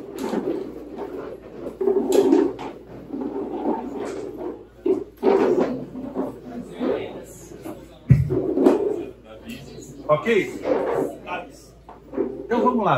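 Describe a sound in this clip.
A middle-aged man speaks steadily through a headset microphone in a room with a slight echo.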